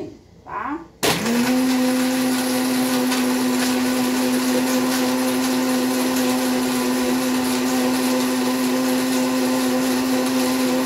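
A blender starts up and whirs steadily.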